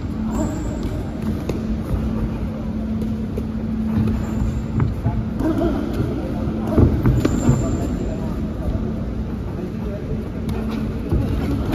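Sneakers shuffle and squeak on a canvas floor.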